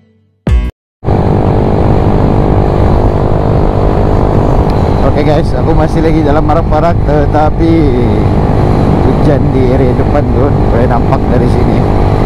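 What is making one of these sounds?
A motorcycle engine drones steadily while riding along.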